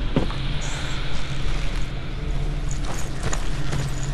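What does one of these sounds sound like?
Footsteps scuff on rough ground.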